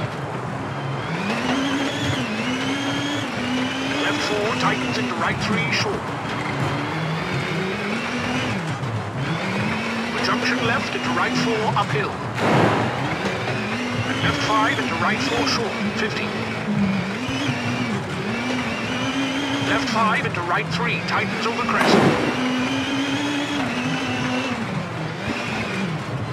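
Tyres crunch and skid on gravel.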